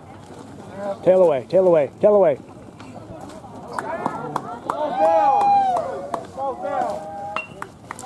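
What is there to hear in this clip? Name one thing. Young players and spectators shout and cheer outdoors.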